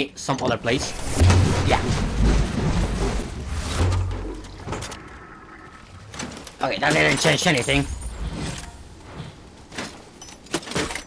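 A man talks with animation, close to a microphone.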